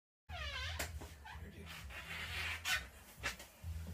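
A door swings slowly.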